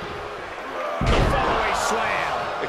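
A heavy body slams onto the wrestling mat with a loud thud.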